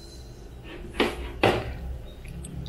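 A glass knocks on a table.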